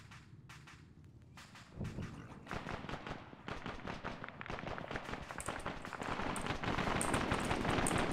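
Boots step on a hard tiled floor.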